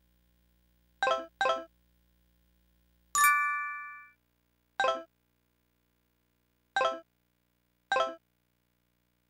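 Short blips sound as the game's menu cursor moves.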